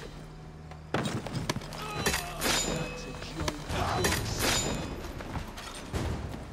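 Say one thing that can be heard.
Swords clash and ring with metallic clangs.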